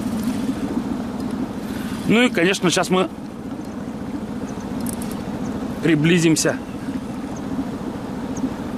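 Water splashes against a moving boat.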